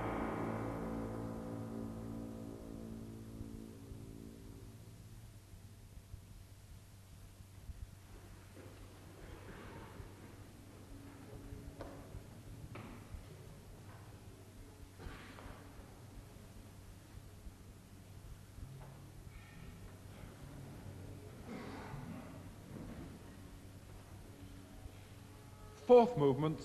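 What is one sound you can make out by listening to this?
An old radio hums with a low, steady drone and faint crackle.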